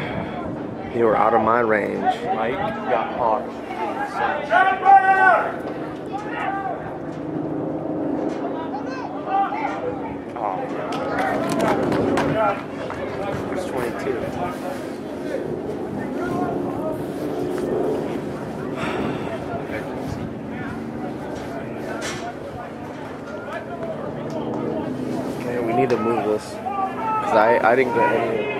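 A man close by talks and cheers excitedly.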